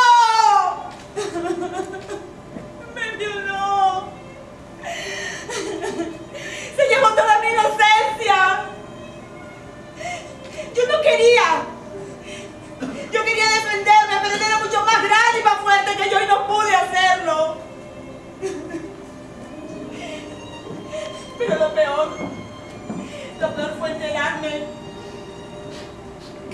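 A woman speaks and cries out with emotion, heard from a distance in a large room.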